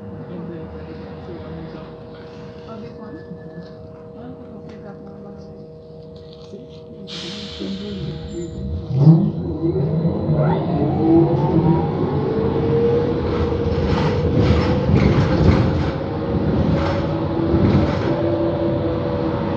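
A bus engine hums quietly, then revs up as the bus pulls away.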